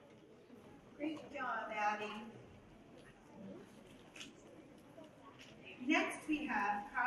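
A woman reads out calmly into a microphone.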